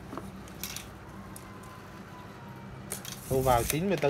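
A metal tape measure rattles as it is pulled out and moved.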